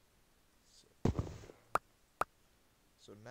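A block breaks with a short crunch and items pop.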